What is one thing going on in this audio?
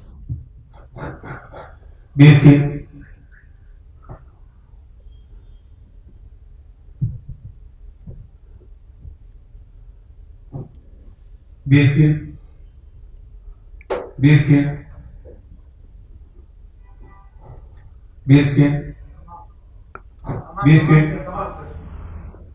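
A man speaks calmly and close by, in short phrases with pauses.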